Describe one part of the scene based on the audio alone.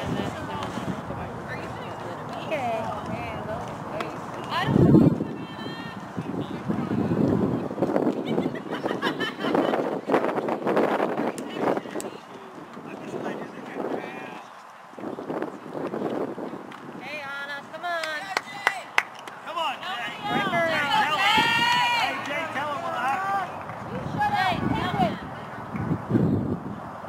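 Young women cheer and call out from the field.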